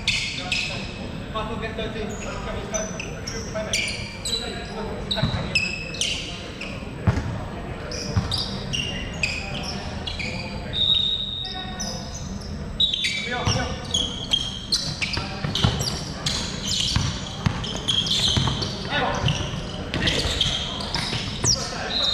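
Young men shout and call out to each other across the hall.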